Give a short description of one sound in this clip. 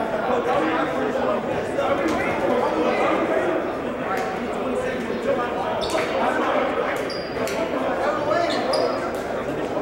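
A basketball bounces on the floor as a player dribbles.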